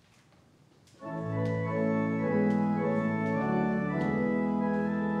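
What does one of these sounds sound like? An organ plays sustained chords.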